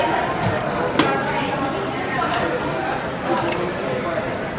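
A seat belt buckle clicks shut.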